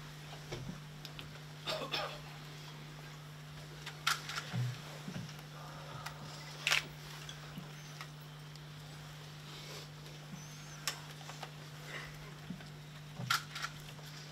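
A woman sobs and sniffles quietly nearby.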